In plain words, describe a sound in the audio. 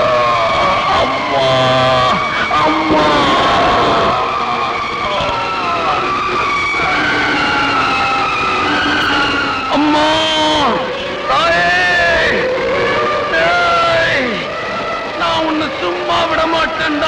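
A man sings loudly with anguish.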